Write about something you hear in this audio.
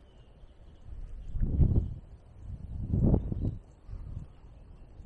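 Wind gusts buffet loudly outdoors.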